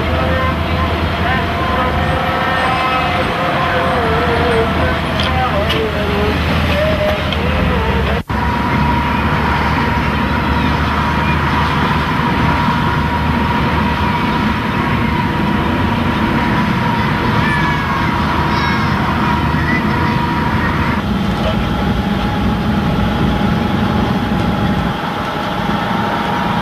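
A heavy vehicle engine rumbles steadily close by.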